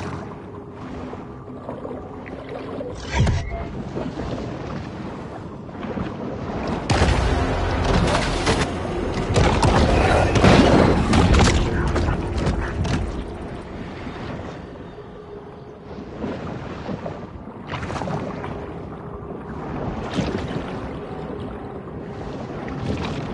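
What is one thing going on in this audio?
Water rumbles and swirls in a low, steady underwater wash.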